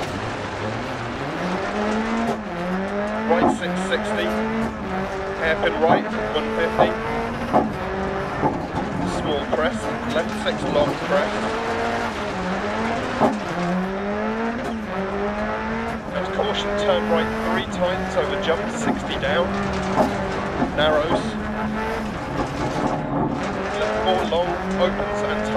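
A rally car engine revs hard, rising and falling as gears change.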